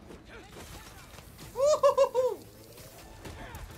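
Gunshots crack from a video game.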